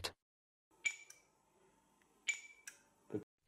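A light switch clicks sharply.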